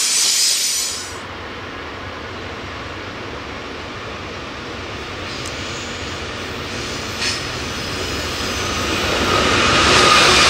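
A diesel locomotive rumbles as it approaches and grows louder.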